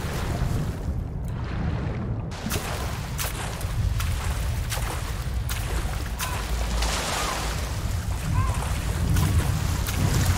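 Water splashes and sloshes while swimming.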